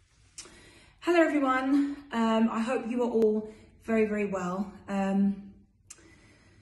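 A young woman speaks expressively, close to the microphone.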